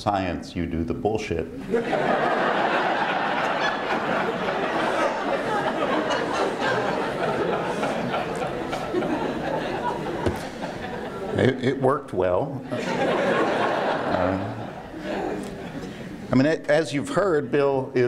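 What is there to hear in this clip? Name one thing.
A middle-aged man speaks through a microphone in a large room, pausing now and then.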